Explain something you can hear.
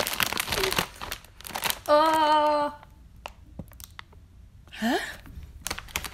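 A plastic snack bag crinkles and rustles.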